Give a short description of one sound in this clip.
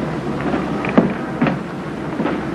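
A folding door creaks and knocks shut.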